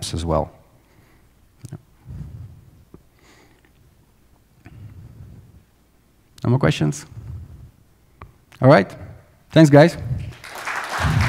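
A young man speaks through a headset microphone in short, calm phrases, with pauses between them.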